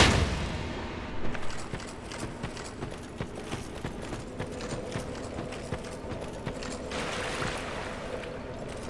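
Armoured footsteps clatter steadily on stone.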